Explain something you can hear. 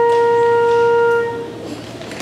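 A school band holds a final chord in a large hall.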